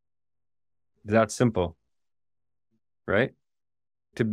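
A man speaks calmly in short phrases into a microphone, heard as if over an online call.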